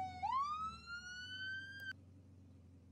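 A siren whoops upward and cuts off.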